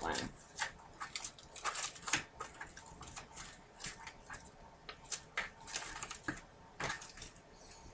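A clear plastic sheet crinkles as it is handled.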